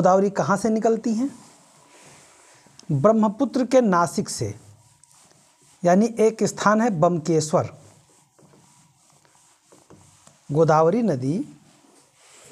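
A man speaks calmly and clearly, in short bursts with pauses.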